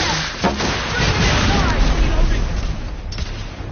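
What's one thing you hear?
Explosions rumble and crackle nearby.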